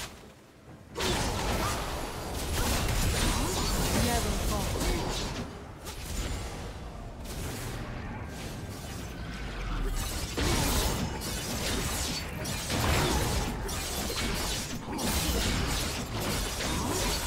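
Video game spell effects crackle and whoosh during a fight.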